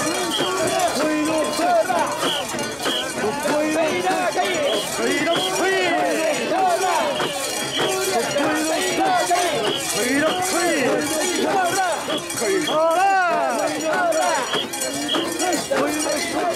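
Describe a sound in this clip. A crowd of men chant loudly in rhythm close by.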